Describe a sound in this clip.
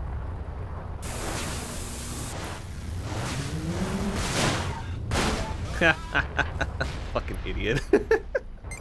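Laser blasts fire and whoosh rapidly.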